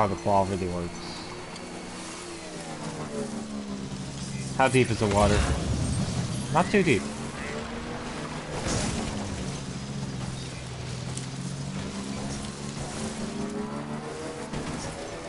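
A motorbike engine hums steadily and rises and falls as it drives over rough ground.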